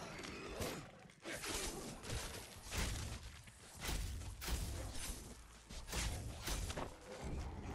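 A blade slashes and thuds into flesh again and again.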